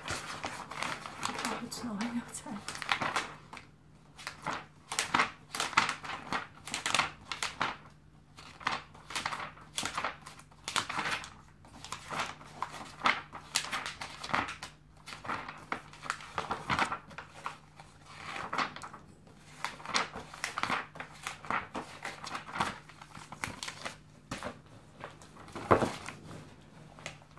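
Magazine pages rustle and crinkle as they are turned.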